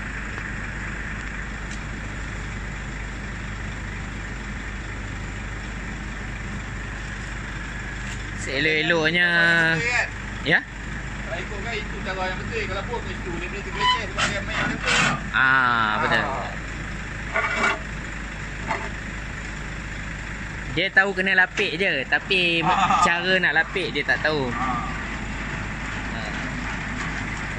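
A truck engine idles with a steady low hum.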